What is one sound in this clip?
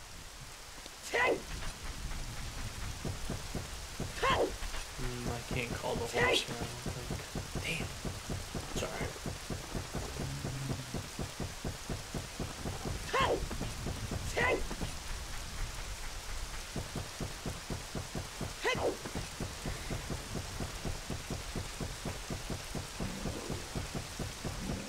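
Footsteps thud steadily on a wooden bridge.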